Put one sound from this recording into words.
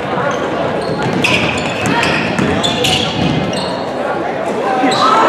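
A crowd of spectators murmurs and calls out.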